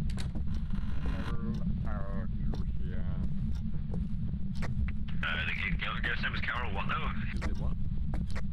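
A man talks into a microphone close by.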